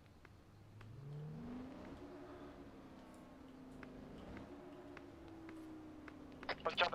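A car engine revs up and hums.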